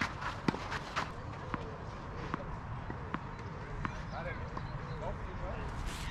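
A tennis ball bounces repeatedly on a clay court.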